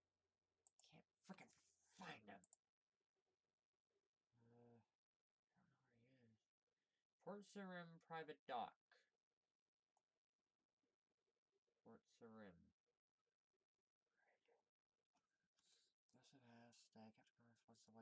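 A young woman talks calmly and close into a microphone, with pauses.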